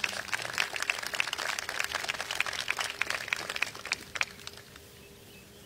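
An outdoor crowd claps and cheers, then the applause dies away.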